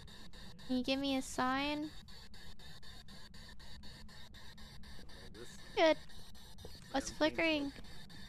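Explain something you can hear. A young woman speaks with animation close to a headset microphone.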